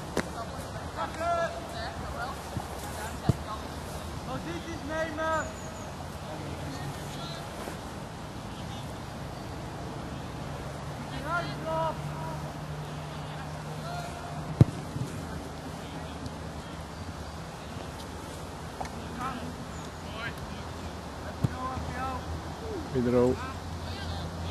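Young women shout to each other across an open field.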